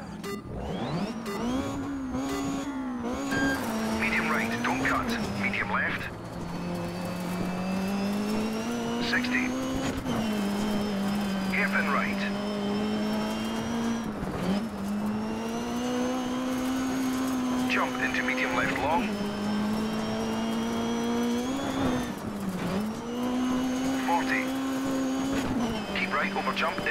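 A rally car engine roars steadily, revving up and dropping sharply at each gear change.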